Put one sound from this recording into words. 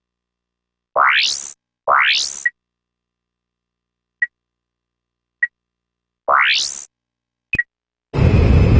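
Short rising electronic whooshes and beeps sound.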